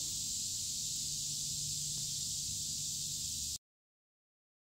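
A calm river flows gently.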